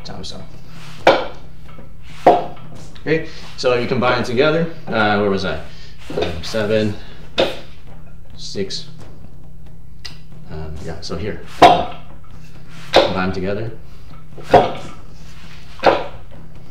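Hands strike the arms of a wooden training dummy with sharp knocks.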